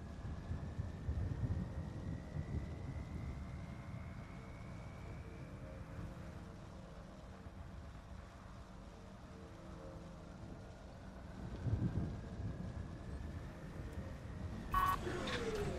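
A vehicle engine idles with a low rumble.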